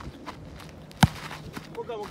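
A soccer ball is kicked with a sharp thud.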